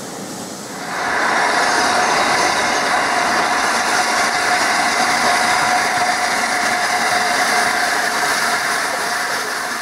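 A steam locomotive puffs and chuffs loudly as it approaches.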